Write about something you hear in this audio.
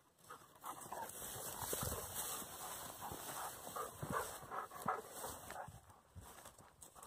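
Dry grass and stalks rustle and swish as a dog bounds through a field.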